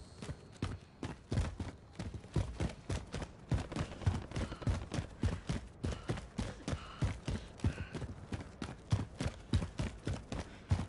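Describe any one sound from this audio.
Footsteps run quickly and steadily on hard ground.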